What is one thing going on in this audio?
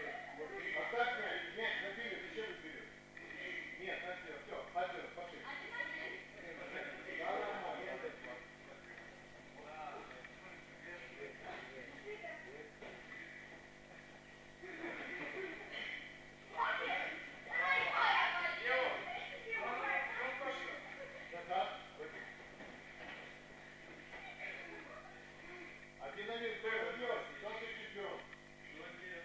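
Young girls chatter and call out in a hall with some echo.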